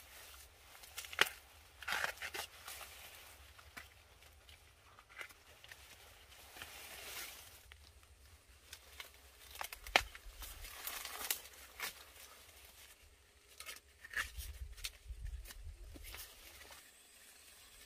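Corn leaves rustle and swish as a woman pushes through the stalks.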